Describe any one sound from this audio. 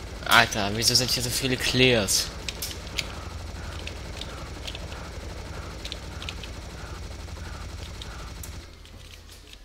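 A rapid-fire gun shoots in a steady, buzzing rattle.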